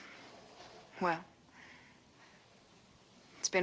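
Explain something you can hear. A woman speaks softly close by.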